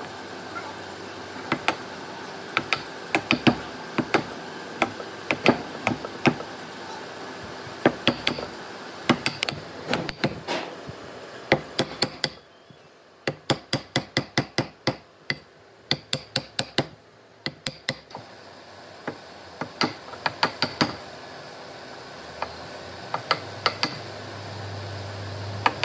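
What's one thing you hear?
A mallet strikes a chisel into wood with sharp, repeated knocks.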